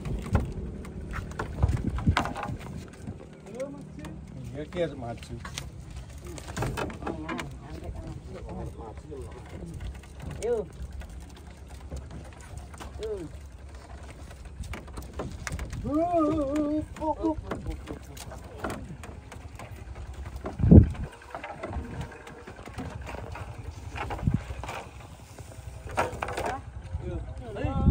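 Heavy logs knock and thud against wood.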